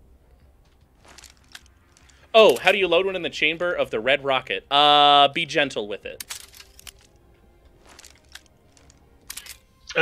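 A pistol's parts click and rattle as it is handled.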